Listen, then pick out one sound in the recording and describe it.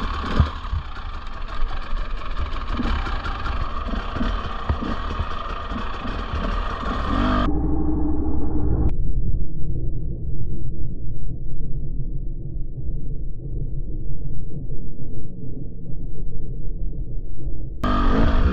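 A dirt bike engine rumbles and revs close by.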